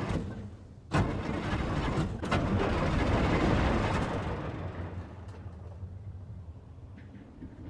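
A generator engine starts with a bang and rumbles steadily.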